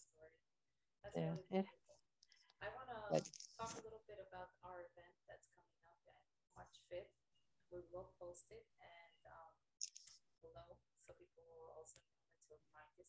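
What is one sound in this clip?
A young woman speaks softly over an online call.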